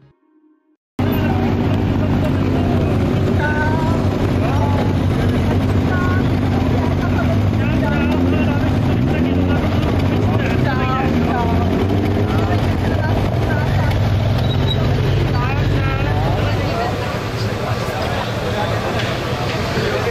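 Men and women chatter in a crowd outdoors.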